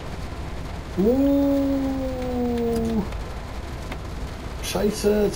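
A train horn sounds loudly, then sounds briefly again.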